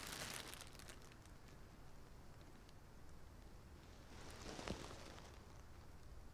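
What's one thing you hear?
Fabric rustles as a dress is shaken and handled.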